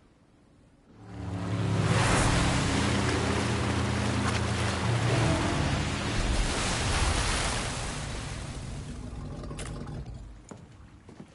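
A jet ski engine roars as it speeds across water.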